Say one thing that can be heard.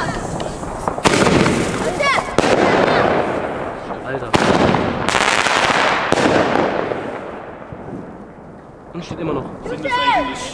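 Fireworks bang and burst overhead.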